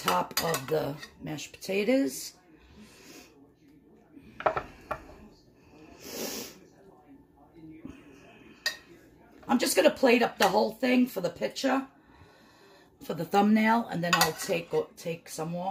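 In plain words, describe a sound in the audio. A metal spoon scrapes and taps against a baking dish.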